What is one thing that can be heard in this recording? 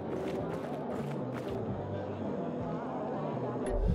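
Soft footsteps rustle through straw.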